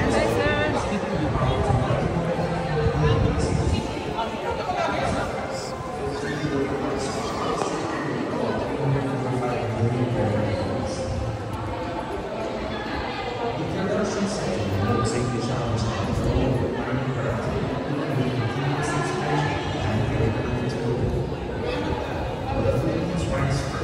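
A crowd of people chatters throughout a large, echoing indoor hall.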